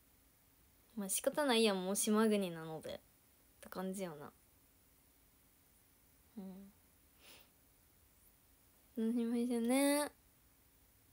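A young woman speaks softly and cheerfully close to a microphone, in short phrases with pauses.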